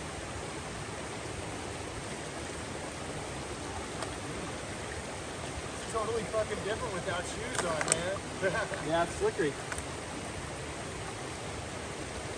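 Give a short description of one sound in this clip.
A shallow stream rushes over rocks.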